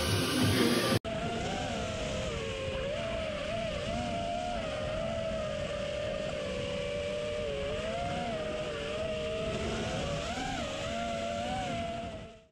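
A small drone's motors whine, rising and falling in pitch as it flies.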